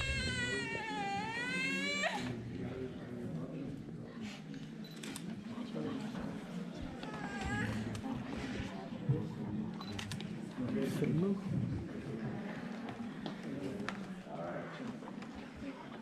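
A crowd of men and women chatters quietly nearby in a large, echoing hall.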